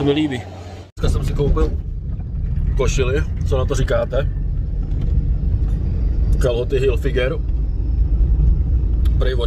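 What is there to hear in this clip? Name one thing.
A car engine rumbles steadily inside a car.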